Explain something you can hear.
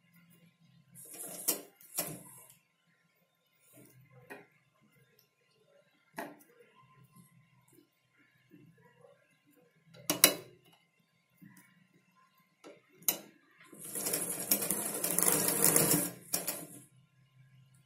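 A sewing machine stitches in short bursts.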